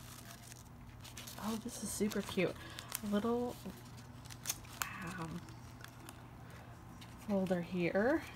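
Paper rustles softly as fingers smooth and press it.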